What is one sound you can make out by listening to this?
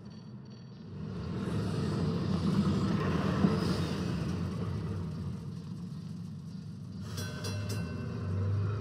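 A tram rumbles slowly past.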